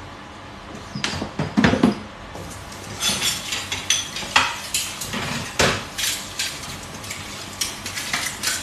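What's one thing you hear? Dishes clatter and knock in a sink.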